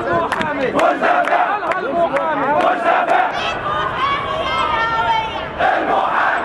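A large crowd of men chants loudly in unison outdoors.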